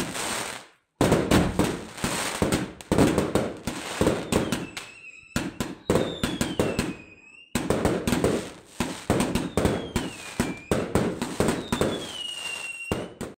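Fireworks burst with loud bangs.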